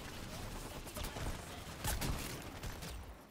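An explosion bursts close by.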